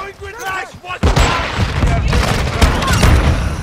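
A shotgun fires several loud, booming shots in quick succession.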